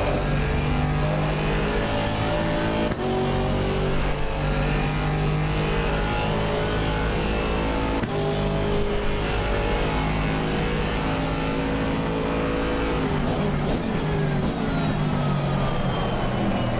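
A racing car engine roars loudly, rising in pitch and dropping sharply with each gear change.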